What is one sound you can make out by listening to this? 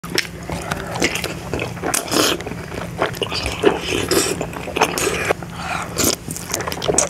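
A young woman chews and slurps food close to a microphone.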